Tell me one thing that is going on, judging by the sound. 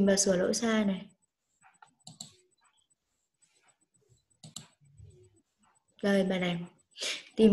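A woman speaks calmly through an online call, in short bursts with pauses.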